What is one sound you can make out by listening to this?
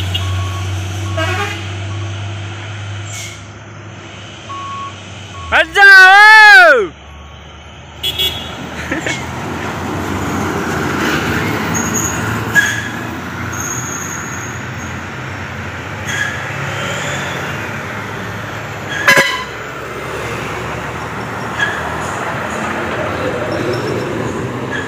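A heavy truck engine rumbles as it drives past.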